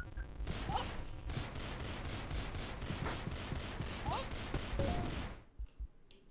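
Rapid game gunshots pop in quick succession.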